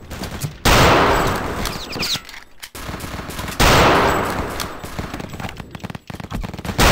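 A sniper rifle fires loud, booming shots that echo away.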